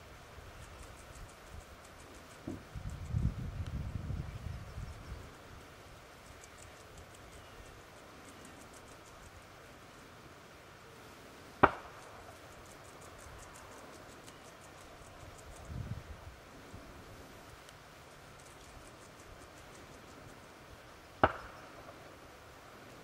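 A beaver chews plants at the water's edge.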